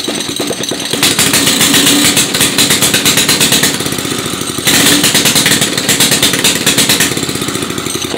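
A small engine revs up louder twice, then settles back.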